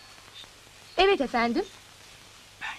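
A young woman speaks calmly into a phone.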